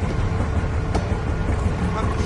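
A wall switch clicks.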